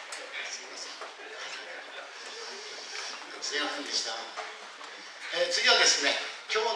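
An audience of men and women murmurs and chatters in a large echoing hall.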